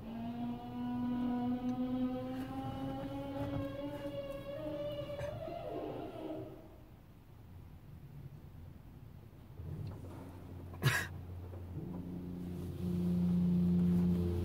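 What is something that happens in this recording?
Car wash machinery whirs and hums nearby.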